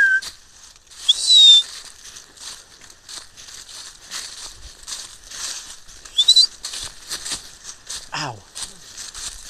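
Dry leaves rustle and crunch underfoot in quick, steady steps.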